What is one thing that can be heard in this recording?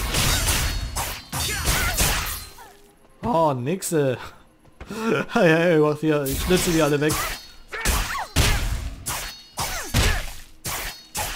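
Sword blades swish and strike in quick bursts of combat.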